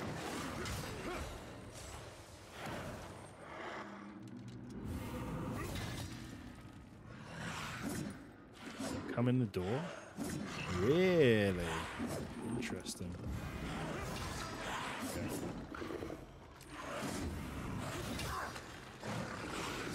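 Heavy blades clash and thud in combat.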